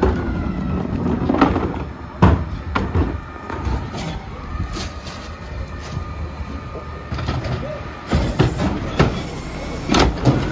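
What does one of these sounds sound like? A garbage truck engine idles with a low rumble.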